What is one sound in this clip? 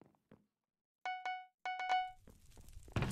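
Short bright chimes ring twice.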